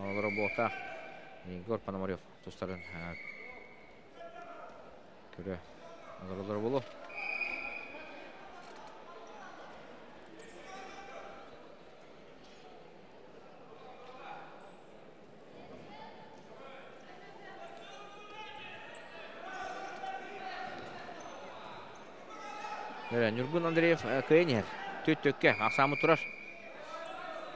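Spectators shout loudly in bursts.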